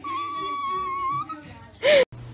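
A dog whines in a long high tone.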